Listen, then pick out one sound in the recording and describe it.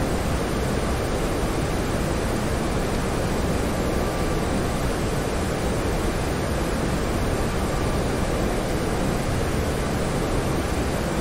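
A jet airliner's engines roar steadily in the cockpit.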